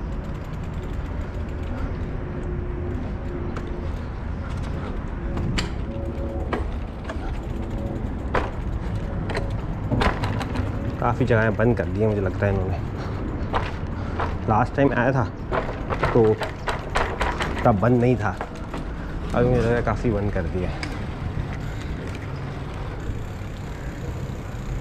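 Scooter wheels rattle and clack over paving stones.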